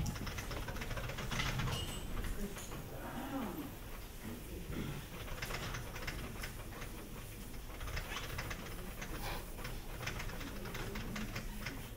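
A board eraser rubs across a blackboard.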